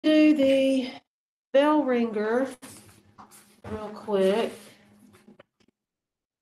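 A woman speaks with animation through an online call.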